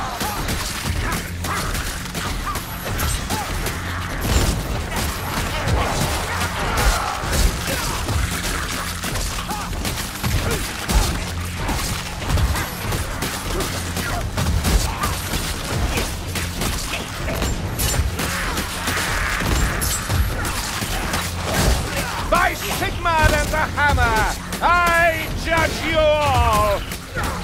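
Weapons hack and slash into creatures again and again.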